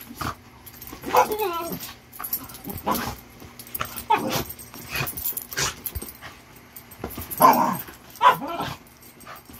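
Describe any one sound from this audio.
A dog growls and grumbles playfully.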